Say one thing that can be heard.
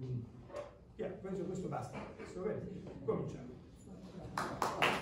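A man speaks to an audience in a large echoing hall.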